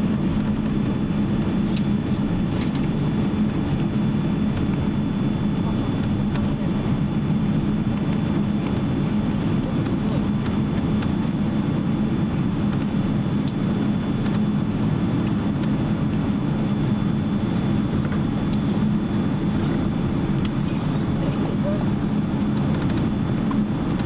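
Jet engines hum steadily from inside an airliner cabin as it taxis.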